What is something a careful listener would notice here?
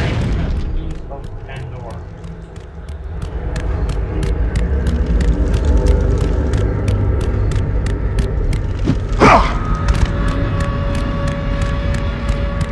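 Quick running footsteps slap on a stone floor.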